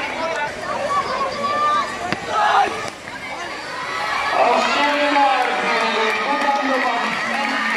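A crowd of children chatters and calls out nearby, outdoors.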